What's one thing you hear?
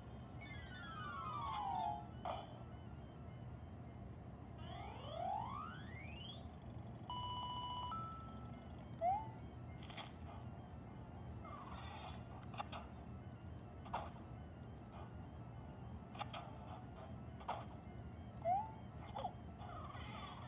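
A handheld game plays quick electronic beeps, sweeps and chimes.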